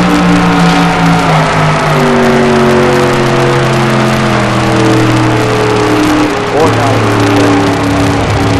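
A race car engine roars loudly at high speed, shifting pitch as it changes gears.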